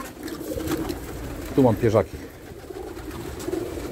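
Pigeon wings flap and flutter.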